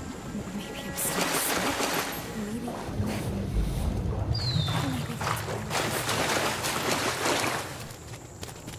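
Water splashes as someone wades through it.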